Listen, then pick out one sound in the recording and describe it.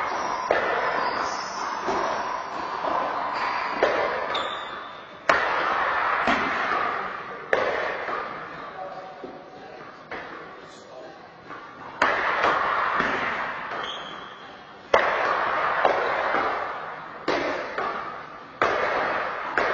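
Paddles strike a ball with sharp smacks that echo in a large hall.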